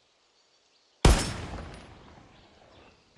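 A rifle fires a single loud shot that echoes away.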